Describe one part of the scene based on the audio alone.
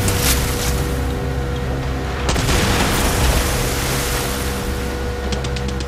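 Water rushes against a boat's hull.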